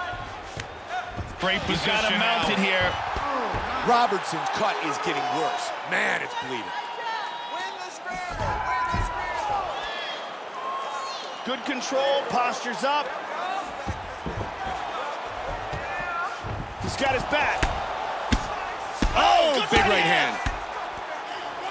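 Punches land with dull thuds on a body.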